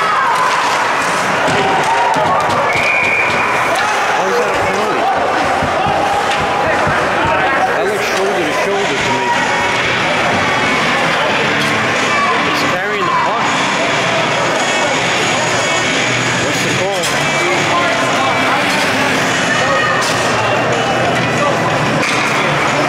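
Many young male players chatter and call out close by, echoing in a large hall.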